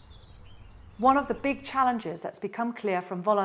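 A middle-aged woman speaks calmly and clearly into a close microphone.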